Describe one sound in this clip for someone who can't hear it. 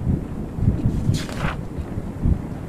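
A paper page turns with a quick rustle.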